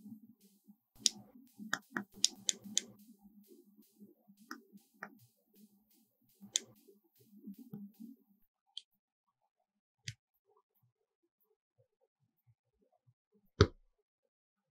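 Plastic model parts click and snap together.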